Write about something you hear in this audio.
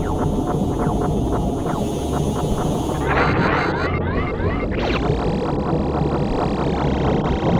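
Game music with a steady beat plays throughout.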